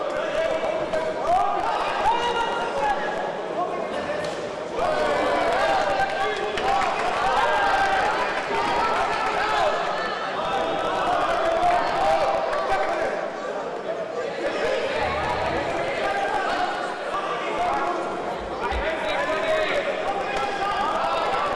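Gloves thud against bodies as fighters exchange punches and kicks.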